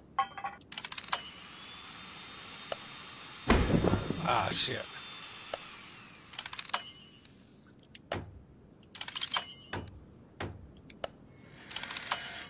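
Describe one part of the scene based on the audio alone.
Short electronic chimes and beeps ring out in bursts.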